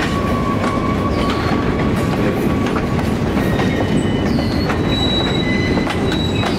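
Freight cars rumble and clatter slowly along the rails.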